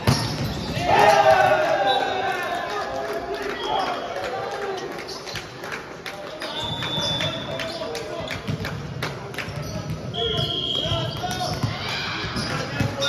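A volleyball thumps against hands and arms.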